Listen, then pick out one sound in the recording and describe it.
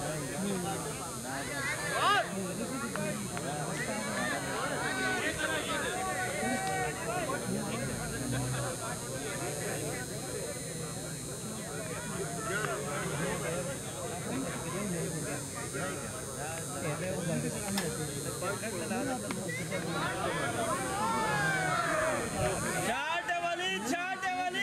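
Men talk and chatter nearby outdoors.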